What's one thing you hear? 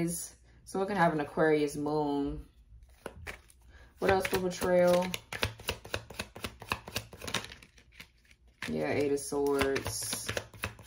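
Cards shuffle with quick, soft clicks and flutters close by.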